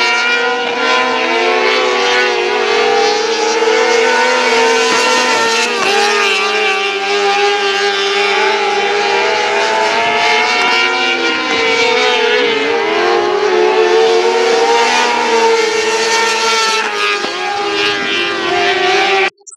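Racing car engines roar loudly, revving up and down.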